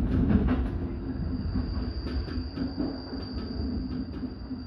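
A high electric whine hums from the train's motor.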